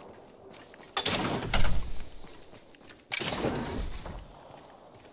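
A supply bin opens with a loud metallic clank.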